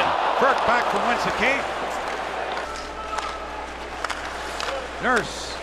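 A large arena crowd murmurs and cheers in a big echoing hall.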